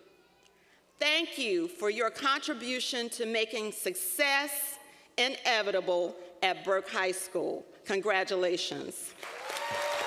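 A woman speaks with animation through a microphone and loudspeakers in a large hall.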